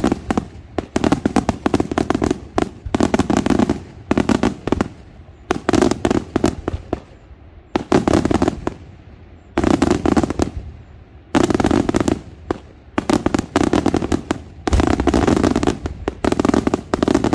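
Fireworks crackle and pop in rapid bursts overhead.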